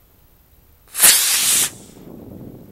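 A model rocket motor ignites with a loud, short whooshing roar.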